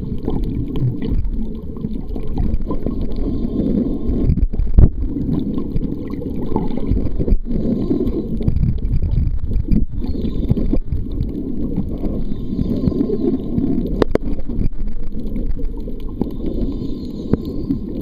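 Water rumbles and swirls in a low, muffled underwater wash.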